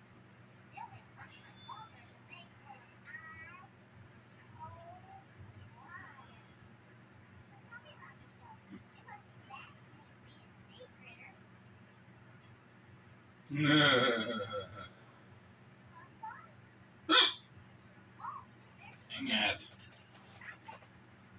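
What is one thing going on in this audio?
Sound from a television plays quietly.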